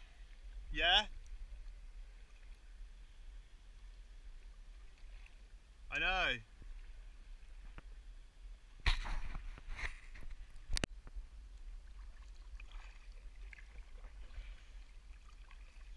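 Small waves lap against a kayak hull.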